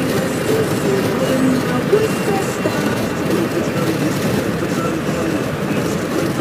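A car rumbles steadily while driving.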